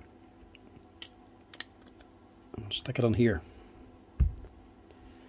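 Small metal parts clink and click as they are handled.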